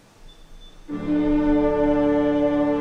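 A choir begins to sing loudly in a large hall.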